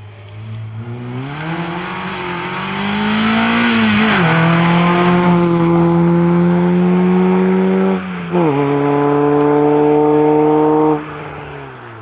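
A rally car engine roars at high revs as the car speeds past close by and shifts gears.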